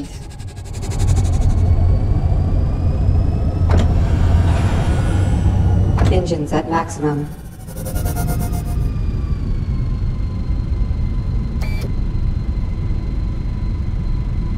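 Spaceship engines roar with a deep, steady rumble.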